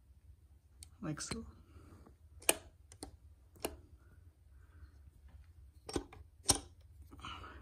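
Metal gear parts click and clack as they are handled up close.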